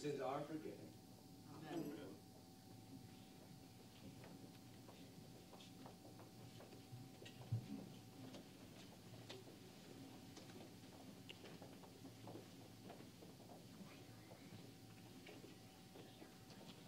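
Footsteps shuffle softly across the floor.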